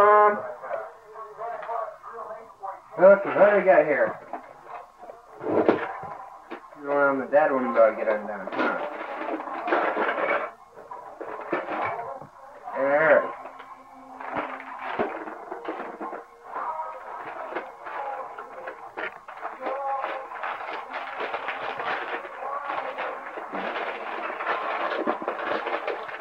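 Wrapping paper rustles and crinkles.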